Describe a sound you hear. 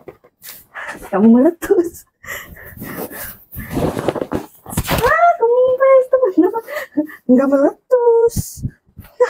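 A woman sings in a playful voice close by.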